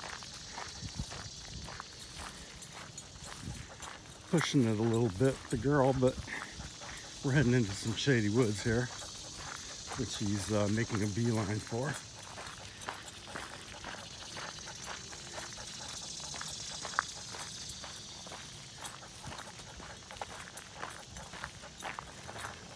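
Footsteps crunch on a gravel path outdoors.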